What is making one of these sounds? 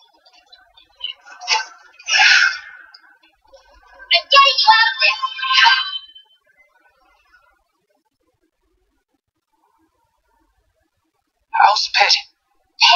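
Game sound effects whoosh and crackle from a small speaker.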